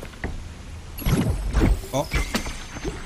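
An arrow whooshes as it is shot.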